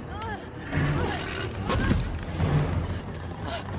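A huge beast roars with a deep rumble.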